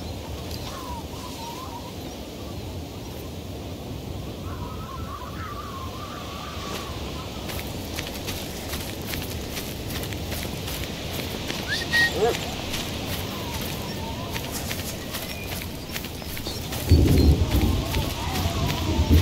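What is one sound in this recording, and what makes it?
Wind blows steadily across open snowy ground.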